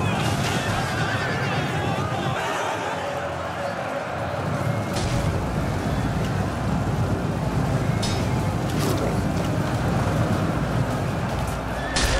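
Horses' hooves thunder as a cavalry charge gallops across open ground.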